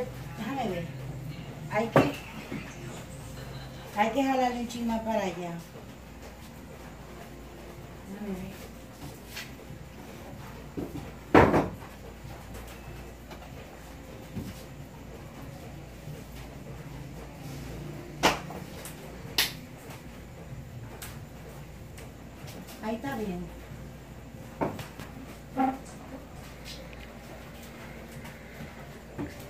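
A wooden chair knocks and scrapes on the floor.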